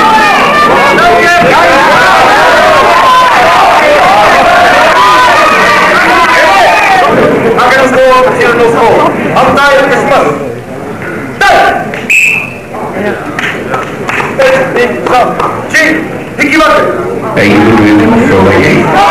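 A crowd cheers and chatters loudly in an echoing hall.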